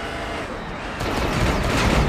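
A vehicle engine roars.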